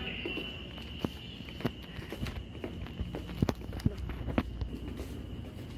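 Footsteps tap on a hard floor in an echoing corridor.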